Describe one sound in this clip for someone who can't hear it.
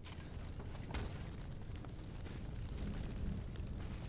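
A fire crackles and roars.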